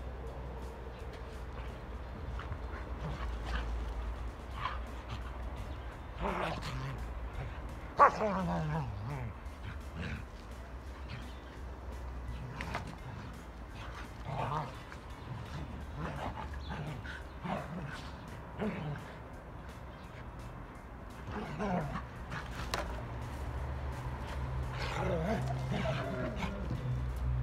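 Dogs' paws scuffle on soft soil.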